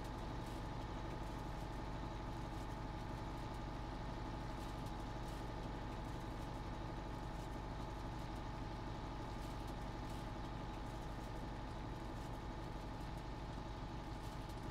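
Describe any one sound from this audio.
A hay tedder rattles and clatters behind a tractor.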